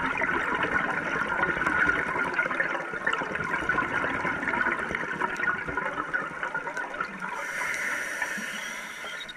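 Bubbles from a diver's regulator gurgle and rush steadily underwater.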